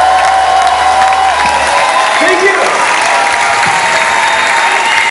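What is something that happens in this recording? Acoustic guitars play in a large hall, heard from the audience.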